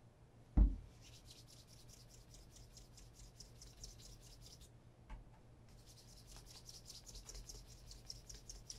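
A cloth rubs briskly against shoe leather.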